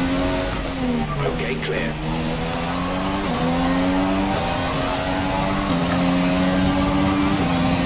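A racing car engine screams at high revs and climbs through the gears.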